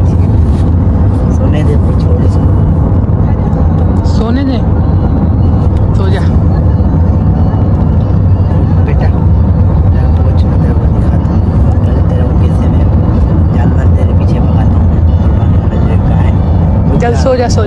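A car's engine and road noise rumble steadily from inside the car.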